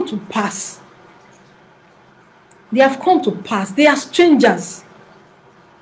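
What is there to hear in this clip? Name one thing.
A woman speaks calmly in short bursts, heard close through a webcam microphone.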